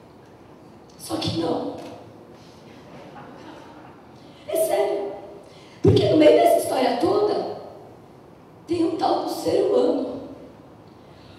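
A young woman speaks through a microphone in short bursts, heard over loudspeakers in a large room.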